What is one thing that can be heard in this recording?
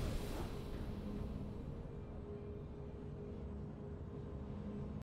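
A triumphant video game fanfare ends on a long held chord.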